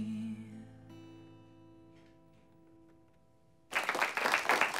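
An acoustic guitar chord rings out and fades.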